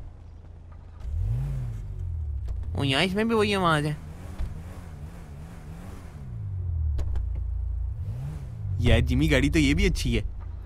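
A car engine idles, revving up and down.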